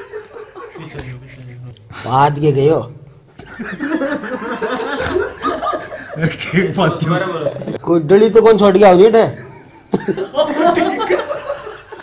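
A middle-aged man laughs close to the microphone.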